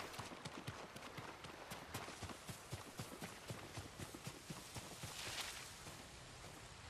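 Footsteps run quickly through grass.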